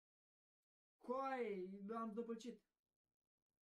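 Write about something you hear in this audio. A young man speaks briefly into a microphone with animation.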